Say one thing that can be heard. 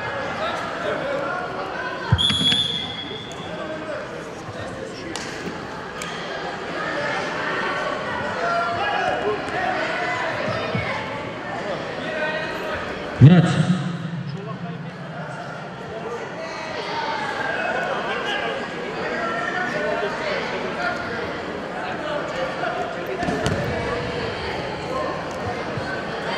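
Voices of spectators murmur and call out in a large echoing hall.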